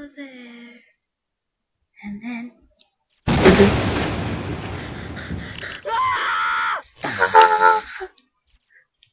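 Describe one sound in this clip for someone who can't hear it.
A young woman speaks excitedly close to a microphone.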